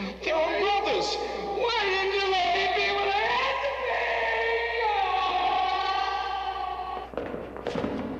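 A man wails and sobs loudly in anguish.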